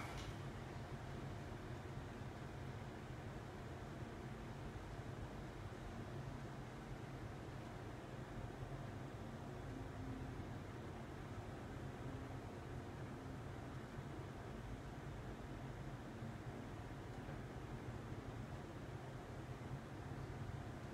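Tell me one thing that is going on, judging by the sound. An extractor fan hums steadily.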